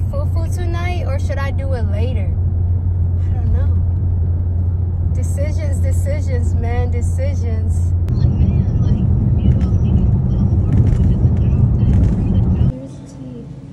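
A car engine hums and tyres roar on the road.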